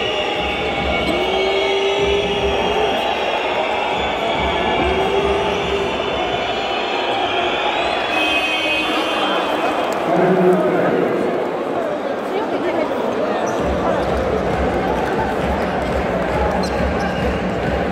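A large crowd cheers and chants loudly in a big echoing arena.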